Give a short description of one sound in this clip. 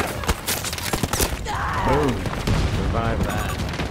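A loud explosion booms close by.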